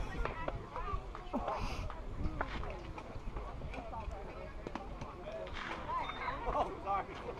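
Young players call out and chatter outdoors.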